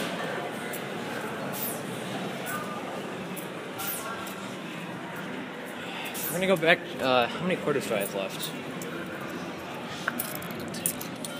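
Arcade machines play electronic jingles and beeps.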